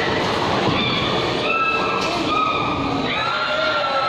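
A bowling ball rolls and rumbles down a wooden lane.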